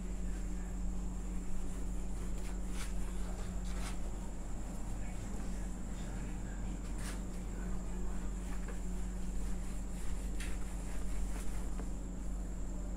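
A duster rubs across a whiteboard.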